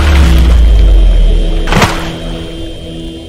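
Water splashes and spatters, then fades away.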